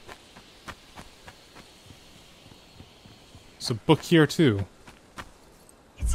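Footsteps tread softly on grass.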